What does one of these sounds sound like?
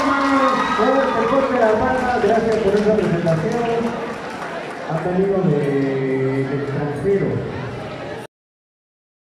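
A group of young people sing together in a large echoing hall.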